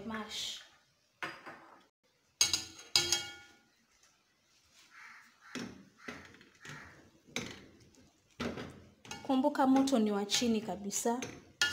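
A potato masher thumps and squishes through soft potatoes in a metal pot.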